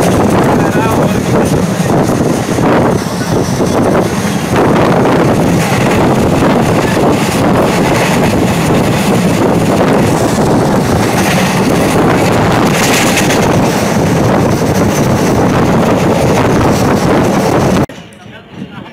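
A passenger train rumbles along the tracks at speed, heard from inside a carriage.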